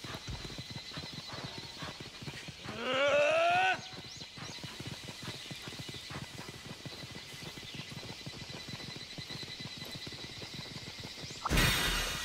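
Paws patter quickly on the ground as an animal runs.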